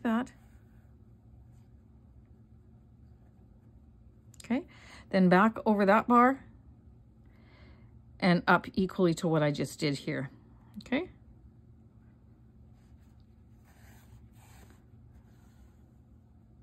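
Yarn pulls softly through knitted fabric as it is stitched.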